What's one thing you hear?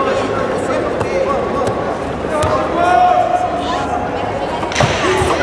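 Bare feet shuffle and thump on a padded mat.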